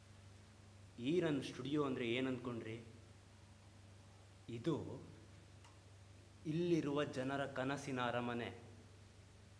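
A young man speaks with animation, his voice echoing slightly.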